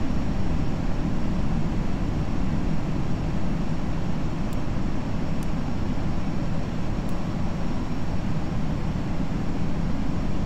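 Jet engines rumble steadily.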